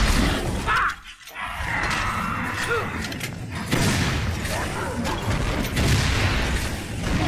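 A heavy gun fires in loud bursts.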